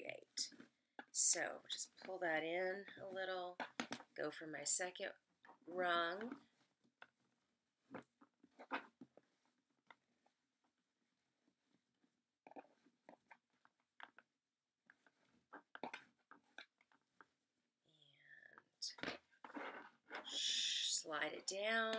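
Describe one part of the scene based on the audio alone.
Coarse fabric rustles and crinkles as hands scrunch it.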